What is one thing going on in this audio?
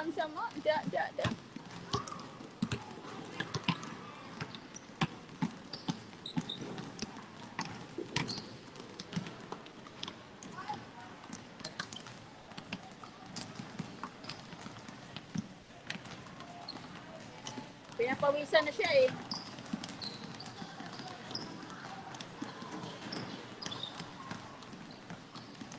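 Basketballs bounce on a hard court, echoing in a large open hall.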